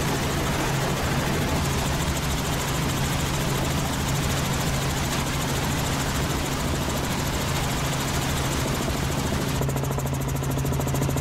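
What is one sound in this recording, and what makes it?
A helicopter engine and rotor drone steadily and loudly from close by.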